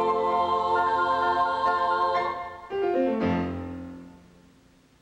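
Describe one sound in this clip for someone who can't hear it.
A children's choir sings together in a large hall, then the song ends with a fading echo.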